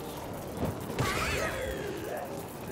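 Fireballs burst with fiery whooshes in a video game.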